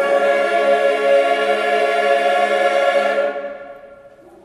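A mixed choir sings together.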